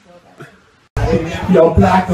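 A young man and an elderly woman sing loudly through microphones.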